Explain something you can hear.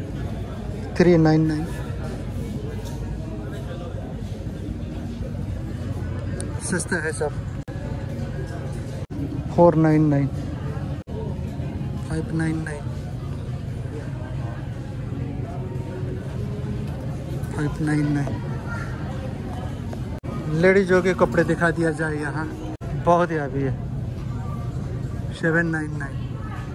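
People chatter faintly in the background.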